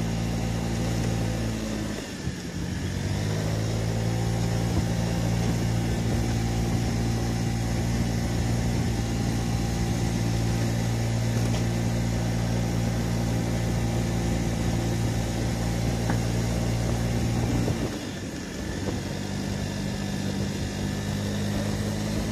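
A scooter engine hums steadily, dipping and rising in pitch as the rider eases off and speeds up.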